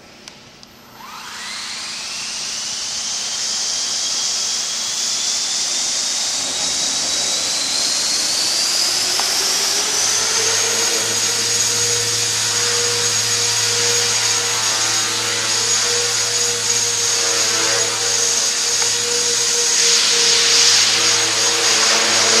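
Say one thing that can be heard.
A small model helicopter's motor whines, rising in pitch as it spins up and then holding steady.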